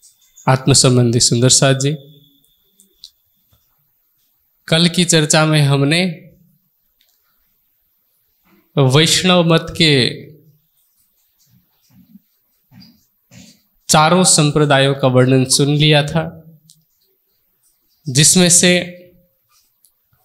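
A man sings or chants into a microphone in short phrases with pauses between them.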